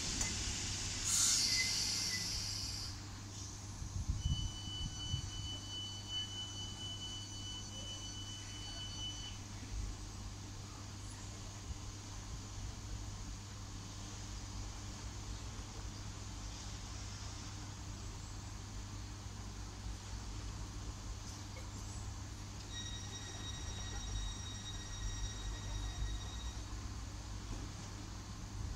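A train rumbles slowly past along the tracks.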